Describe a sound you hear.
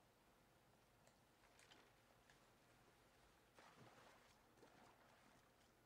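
Gentle waves wash onto a shore.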